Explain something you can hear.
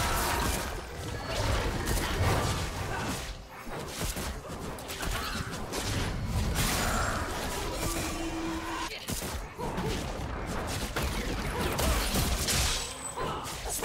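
Weapons clash and strike in a game battle.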